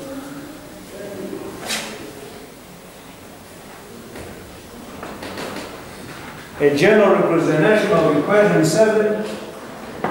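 A man speaks loudly and clearly, like a teacher addressing a class.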